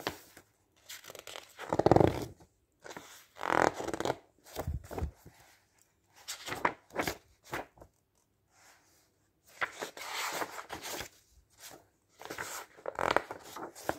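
Paper pages rustle and flap as they are turned by hand.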